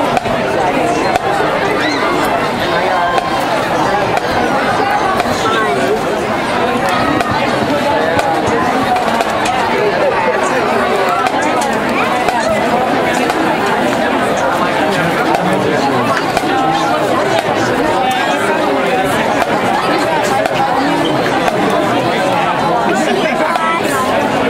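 Snare drums rattle and tap in a steady beat.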